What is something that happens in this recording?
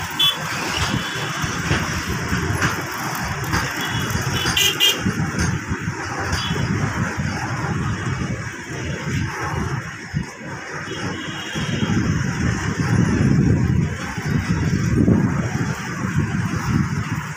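Motorbikes pass by on a road nearby.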